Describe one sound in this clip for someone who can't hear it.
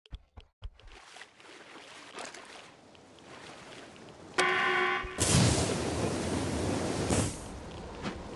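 Water splashes as a figure wades.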